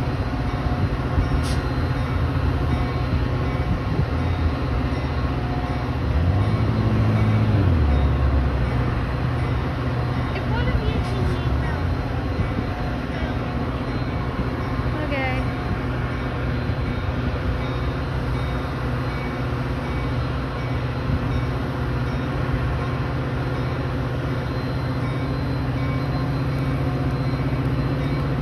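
A diesel locomotive rumbles steadily as a train approaches slowly.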